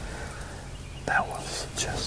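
A man whispers close by.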